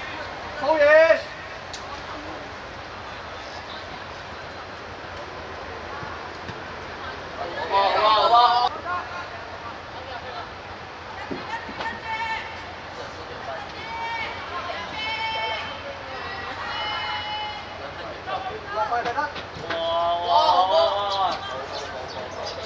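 Young boys shout and call out across an open outdoor field.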